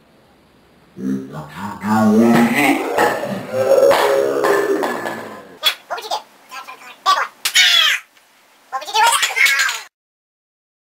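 Two young men laugh and talk nearby.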